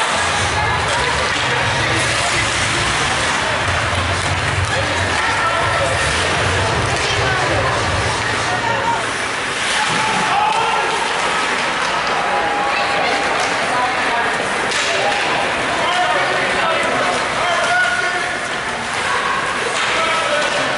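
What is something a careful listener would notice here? A crowd of spectators murmurs and calls out in an echoing rink.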